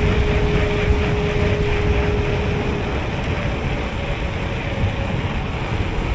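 Wind rushes and buffets loudly outdoors.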